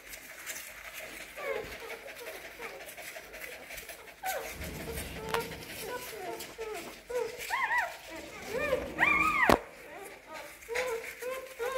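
A dog pants softly.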